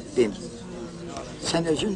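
An elderly man speaks calmly and warmly.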